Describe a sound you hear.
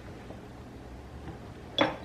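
A plastic lid clicks onto a bowl.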